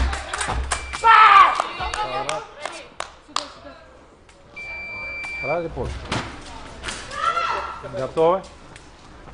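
Young women shout loudly in an echoing hall.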